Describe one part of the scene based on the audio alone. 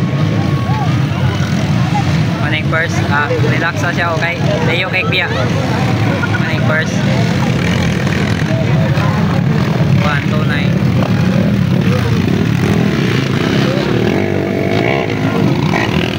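Motorbike engines drone and roar nearby.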